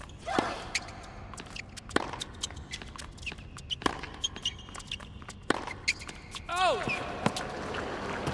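Tennis rackets strike a ball back and forth in sharp pops.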